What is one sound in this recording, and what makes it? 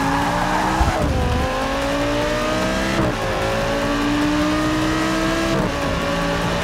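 A racing car engine drops in pitch as gears shift.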